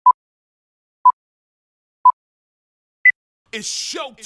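A film countdown leader beeps once a second, its last beep higher.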